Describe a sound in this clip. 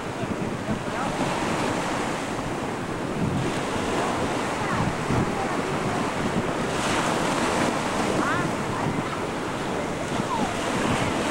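Waves wash and splash steadily.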